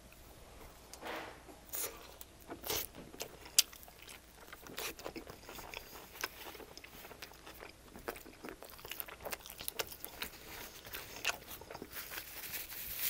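A man chews crunchy food with wet, crisp bites close to a microphone.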